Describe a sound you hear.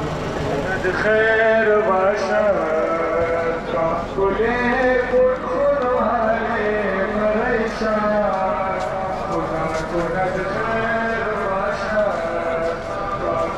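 A man chants in a mournful melody through loudspeakers.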